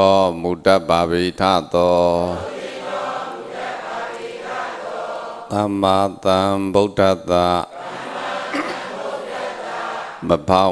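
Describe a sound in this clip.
A man speaks calmly into a microphone, close by, with pauses between phrases.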